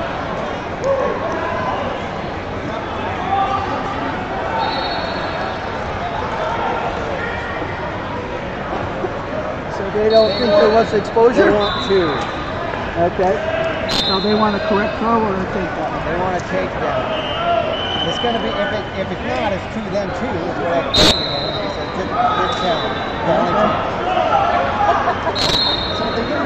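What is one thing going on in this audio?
A crowd of people chatter throughout a large echoing hall.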